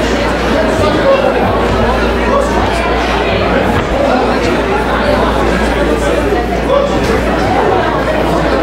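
A crowd chatters and murmurs loudly in a large echoing hall.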